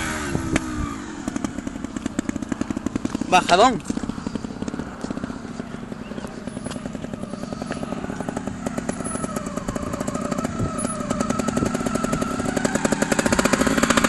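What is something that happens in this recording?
A trials motorcycle idles in the distance.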